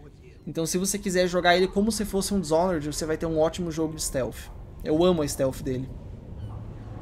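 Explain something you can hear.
A young man talks loudly and with animation into a microphone.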